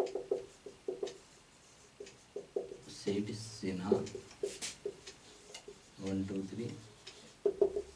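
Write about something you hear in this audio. A marker squeaks in short strokes on a whiteboard.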